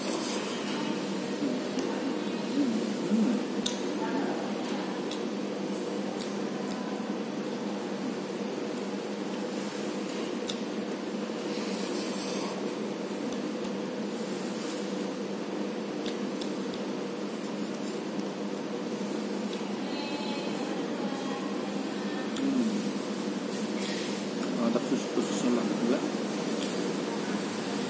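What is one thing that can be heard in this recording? A fork scrapes and taps inside a paper cup.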